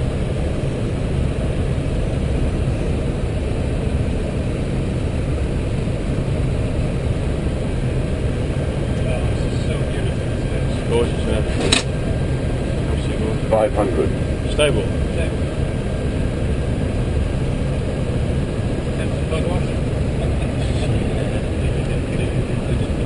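A jet airliner's engines and airflow roar steadily inside the cockpit.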